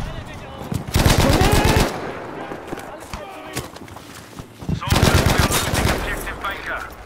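Gunshots fire in quick bursts, loud and close.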